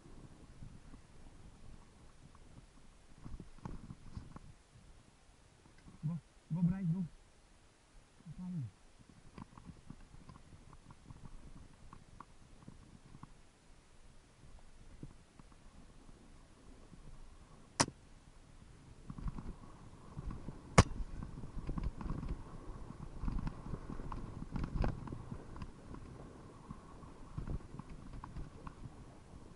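A bicycle rattles and clatters over bumps on the trail.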